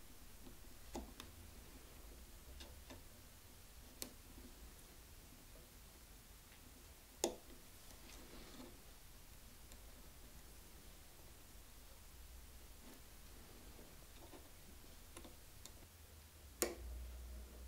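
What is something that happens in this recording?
Small metal tools click and tap against wood now and then.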